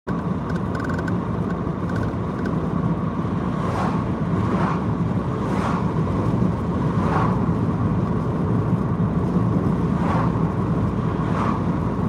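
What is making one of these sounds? Oncoming vehicles whoosh past one after another.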